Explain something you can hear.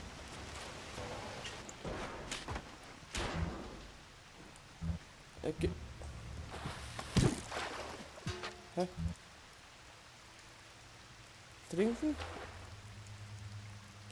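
Water pours and splashes steadily from a leak.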